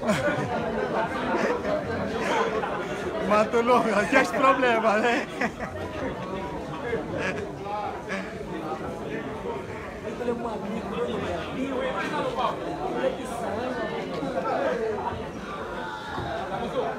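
A young man speaks into a microphone through loudspeakers in a large echoing hall.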